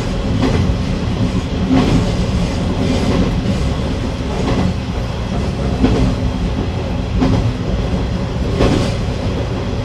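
Train wheels click over rail joints at an even pace.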